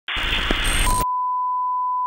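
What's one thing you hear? Television static hisses loudly.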